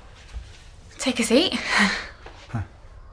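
A woman speaks cheerfully nearby.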